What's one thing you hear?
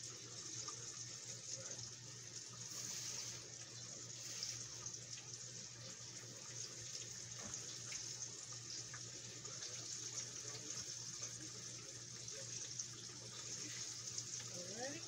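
Food sizzles steadily in a pan.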